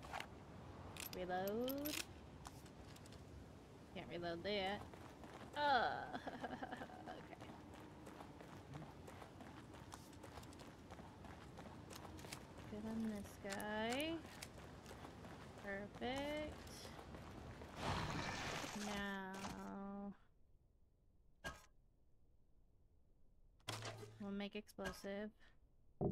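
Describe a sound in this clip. A young woman speaks animatedly into a microphone, close by.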